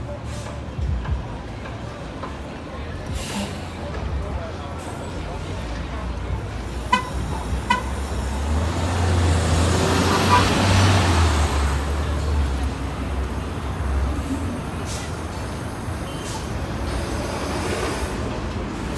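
Traffic hums steadily on a city street.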